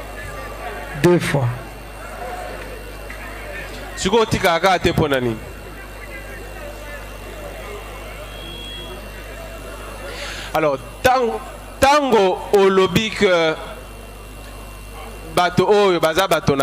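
A young man sings loudly into a microphone in bursts.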